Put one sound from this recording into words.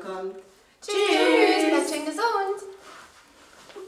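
Young women sing together loudly.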